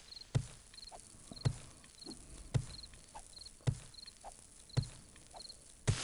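A wooden club thuds repeatedly against a pile of leaves and dirt.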